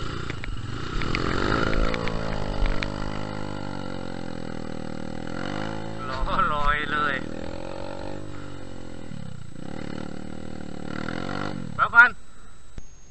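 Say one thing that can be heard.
Another dirt bike engine revs up and down a short way ahead.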